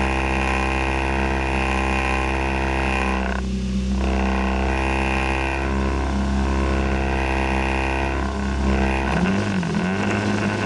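A car engine idles steadily.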